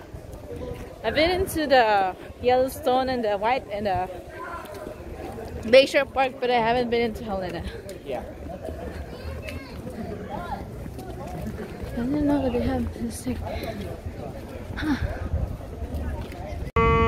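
A young woman talks close by, chatting lively.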